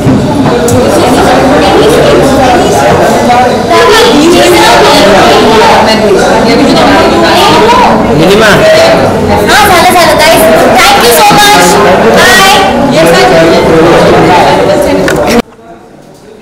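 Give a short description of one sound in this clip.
Another woman talks and laughs nearby.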